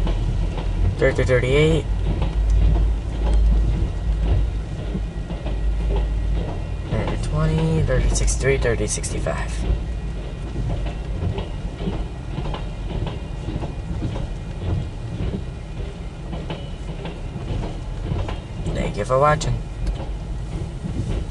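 A passenger train rumbles and clatters past close by.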